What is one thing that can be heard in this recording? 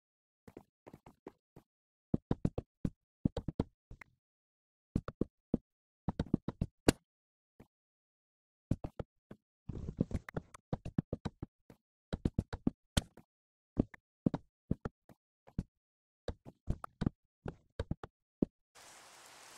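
Wooden blocks thud and knock in quick bursts.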